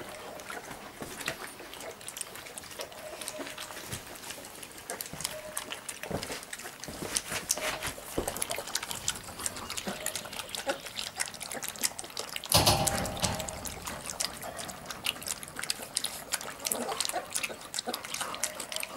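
Puppies lap milk from a metal bowl.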